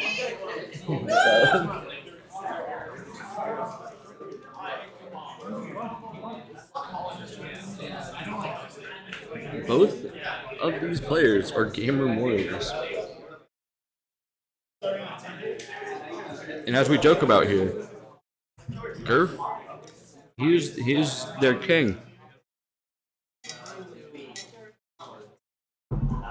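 Young men talk and laugh close to a microphone.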